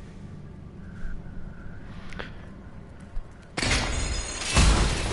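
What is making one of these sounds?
Game combat sounds clash and thud.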